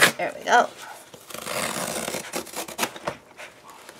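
A cardboard flap scrapes as a box is opened.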